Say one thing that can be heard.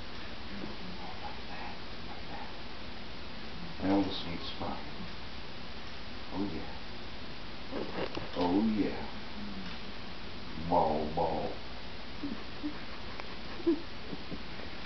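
A middle-aged man talks in short bursts nearby.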